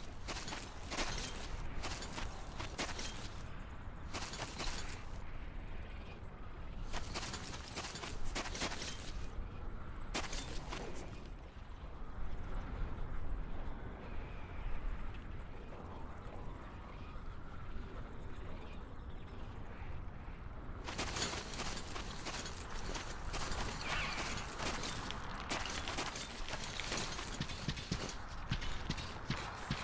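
Footsteps crunch on dry gravel.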